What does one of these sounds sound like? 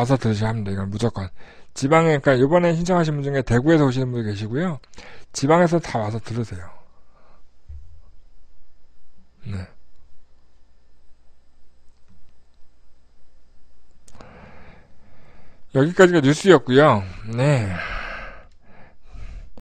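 A middle-aged man talks with animation close to a microphone.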